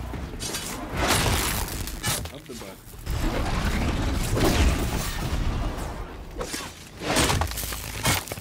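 Electric sparks crackle and burst with a loud zap.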